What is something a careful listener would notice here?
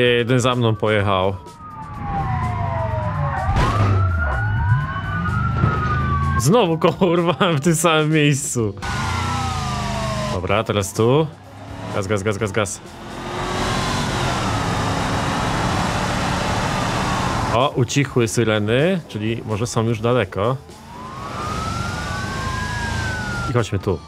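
A car engine hums and revs up as the car speeds up, then drops back.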